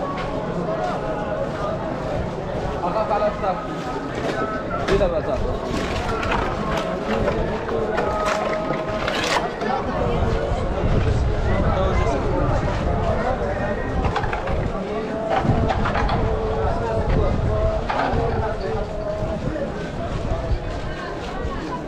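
Footsteps shuffle on a paved street.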